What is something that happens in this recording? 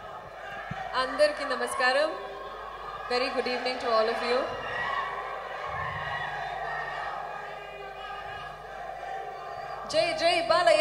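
A young woman speaks with animation into a microphone, heard over loudspeakers.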